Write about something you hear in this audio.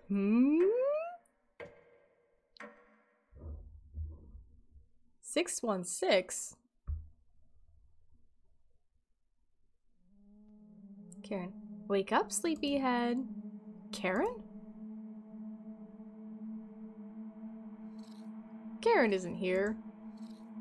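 A young woman speaks and exclaims with animation, close to a microphone.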